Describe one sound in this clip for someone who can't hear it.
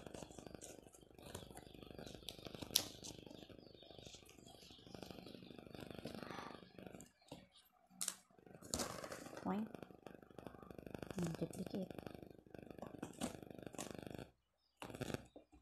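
Scissors snip through stiff paper.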